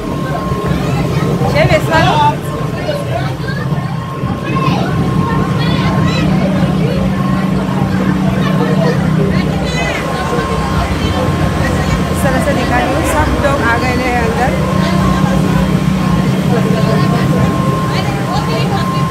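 A crowd of people chatters in the background.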